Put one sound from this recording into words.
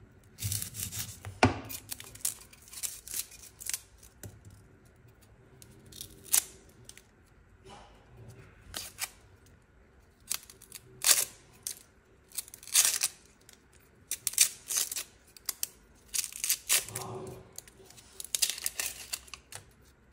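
A knife scrapes and crackles as dry onion skin is peeled off.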